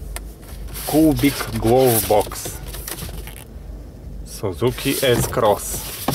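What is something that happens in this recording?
A paper brochure rustles in a hand.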